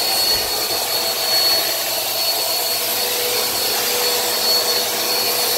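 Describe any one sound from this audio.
A floor cleaner whirs steadily close by.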